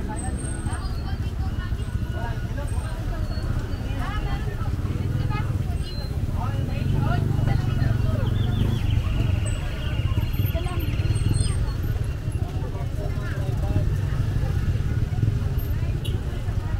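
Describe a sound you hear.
Many people chatter in a crowd nearby.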